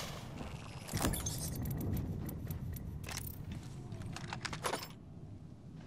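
Short clicks tick quickly as items are picked from a menu.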